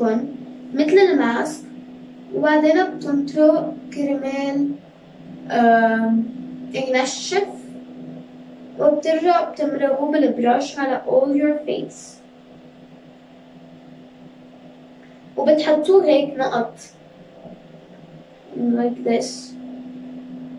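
A young girl talks calmly and close by, in a small echoing room.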